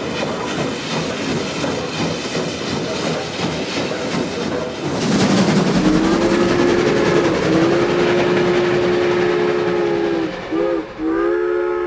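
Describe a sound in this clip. A train rumbles and chugs along the tracks.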